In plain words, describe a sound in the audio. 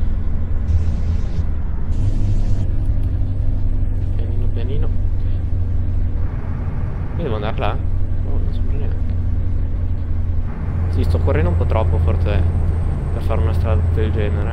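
A truck engine drones steadily at a low pitch.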